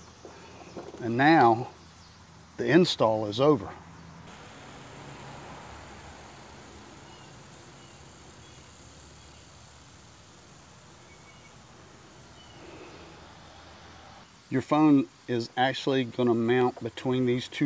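A man speaks calmly and close up, explaining.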